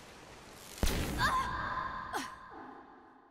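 A young woman cries out in pain.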